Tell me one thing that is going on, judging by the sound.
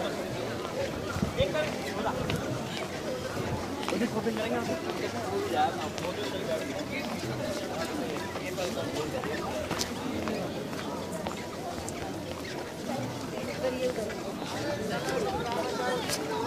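Footsteps tap on a paved walkway.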